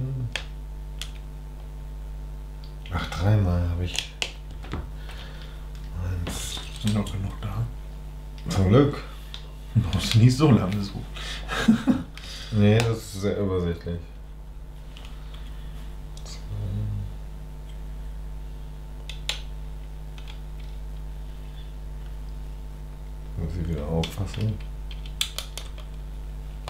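Small plastic bricks click and rattle as they are handled and pressed together.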